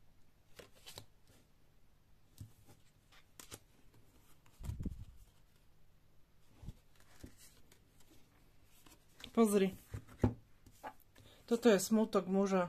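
Playing cards are slid and tapped onto a table.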